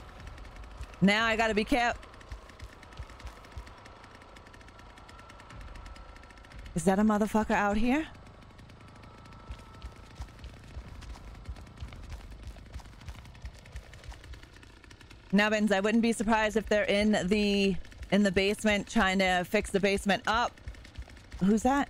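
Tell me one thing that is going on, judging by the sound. A woman talks with animation into a microphone.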